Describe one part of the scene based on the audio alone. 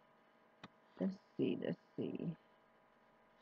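A woman speaks briefly and quietly, close by.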